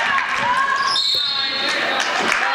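A referee blows a short whistle.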